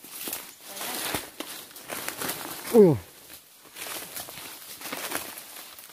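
Footsteps crunch through dry leaves and grass.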